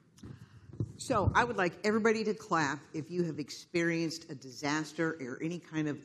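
An elderly woman speaks with animation through a microphone.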